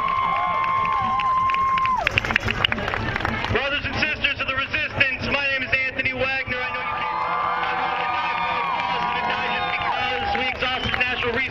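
Many people in a crowd whoop and cheer.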